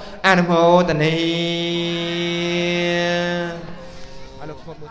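A man holds a long sung note into a microphone.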